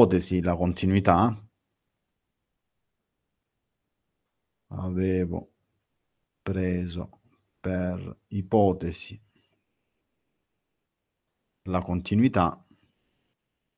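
A man speaks calmly into a microphone, heard through an online call, in short phrases with pauses.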